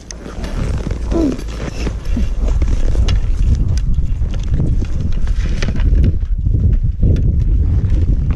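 Skis scrape and crunch on snow.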